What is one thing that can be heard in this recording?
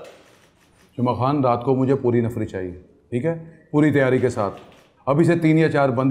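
A middle-aged man speaks firmly and loudly, giving orders.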